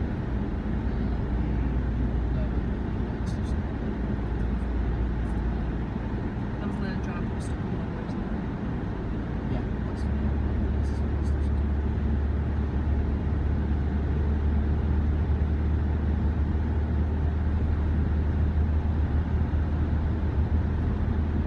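A car's engine hums steadily from inside as it drives along a motorway.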